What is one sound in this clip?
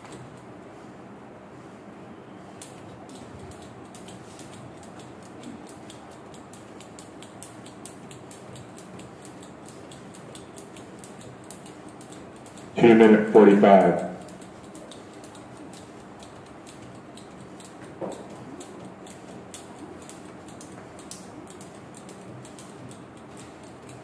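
A skipping rope slaps the floor in a steady rhythm.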